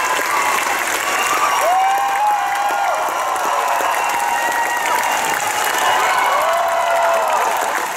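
A large audience claps loudly and steadily.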